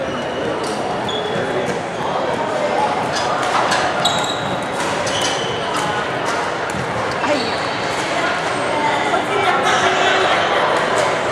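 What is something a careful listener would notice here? Shoes squeak sharply on a wooden floor.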